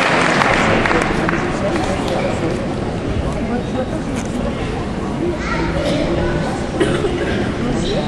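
A large choir sings in a big echoing hall.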